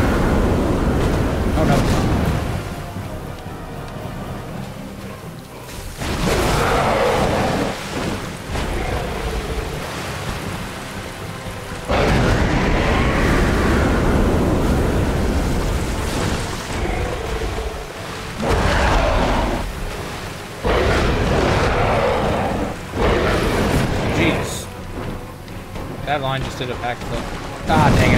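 A large winged beast's wings beat with heavy whooshes.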